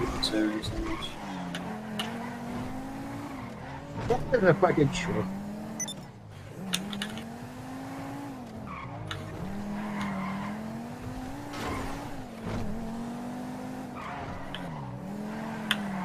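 A car engine revs up and drops in pitch with each gear change.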